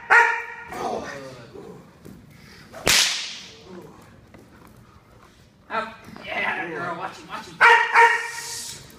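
A dog barks loudly in an echoing hall.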